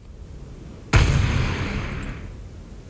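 A rocket launcher fires with a loud whoosh.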